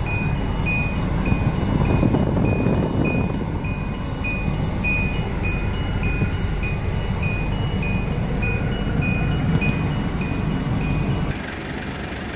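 A vehicle engine idles with a low rumble.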